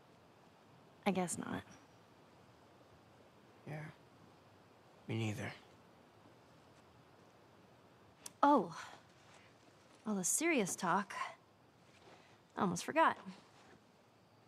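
A teenage girl speaks and laughs lightly.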